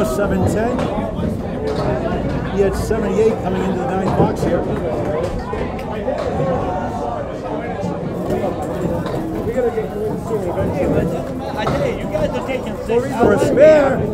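Several men talk loudly and with animation in a large echoing hall.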